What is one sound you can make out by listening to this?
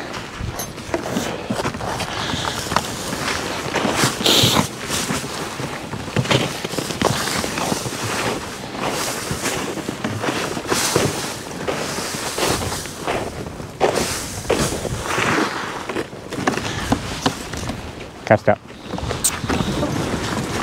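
Snow crunches underfoot with steady footsteps.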